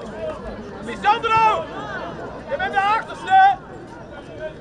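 Several young people call out loudly in high voices.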